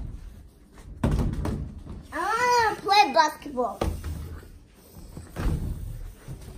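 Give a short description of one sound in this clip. A large inflatable ball thumps and bounces.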